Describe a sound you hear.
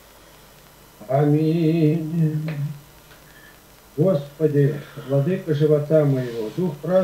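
An elderly man speaks slowly over an online call.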